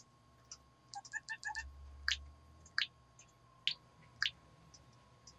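Buttons on a handheld game console click.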